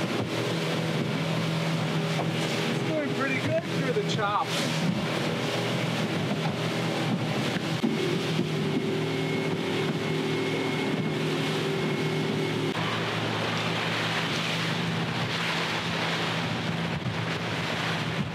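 Water splashes and rushes against the hull.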